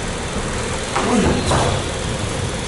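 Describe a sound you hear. A shin kick thuds against a body.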